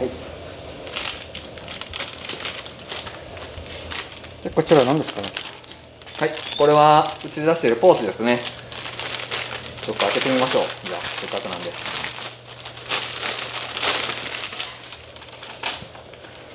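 Plastic packaging crinkles and rustles in someone's hands.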